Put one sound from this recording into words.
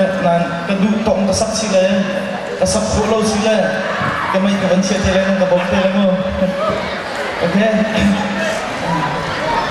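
A young man sings through a microphone in a large echoing hall.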